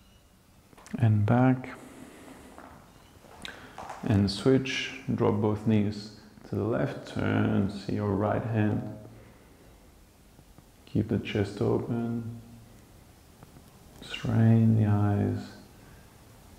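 A man speaks calmly and clearly into a nearby microphone, with pauses between phrases.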